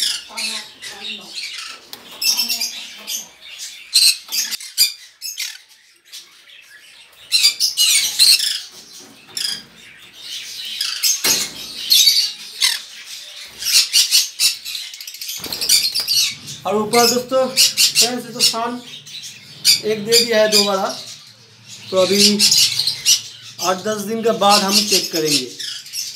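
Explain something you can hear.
Birds chirp and squawk shrilly nearby.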